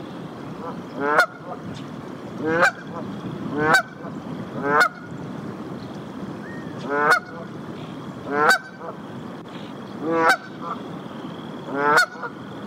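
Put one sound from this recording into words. A goose honks loudly over and over, each call rising and breaking off sharply.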